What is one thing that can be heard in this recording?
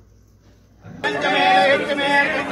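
A crowd of people sings and chants loudly close by.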